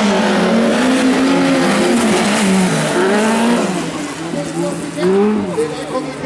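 Tyres skid and crunch on loose gravel.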